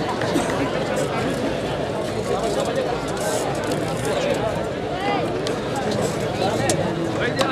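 Men shout from within an outdoor crowd.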